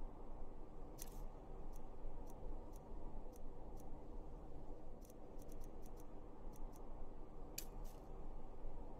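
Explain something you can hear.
Short menu clicks tick several times in quick succession.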